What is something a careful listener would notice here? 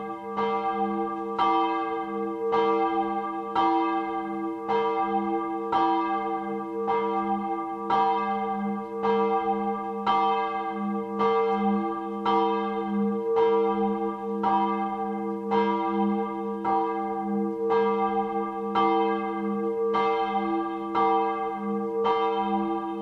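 Church bells ring out steadily, striking again and again with a long ringing hum.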